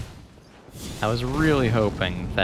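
A fiery explosion booms.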